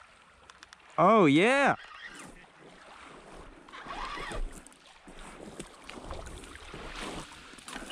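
A small fish splashes in shallow water.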